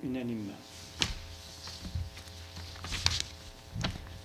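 Papers rustle and tap on a desk.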